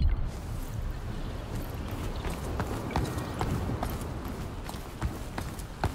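Footsteps run quickly across stone.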